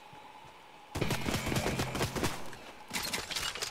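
A pickaxe chops repeatedly into a tree trunk.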